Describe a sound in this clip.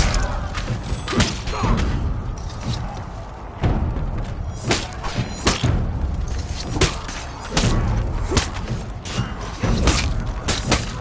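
Swords clash and strike armour again and again.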